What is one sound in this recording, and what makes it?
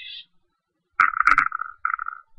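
A thin tool taps against a plastic palette.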